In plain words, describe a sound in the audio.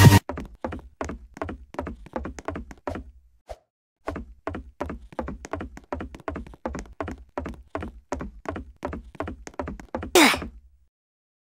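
Quick footsteps thud on a wooden floor.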